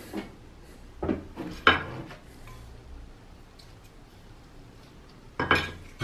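A metal lid clunks onto a wooden table.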